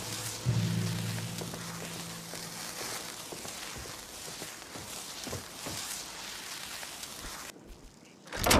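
A magic spell crackles and hisses steadily.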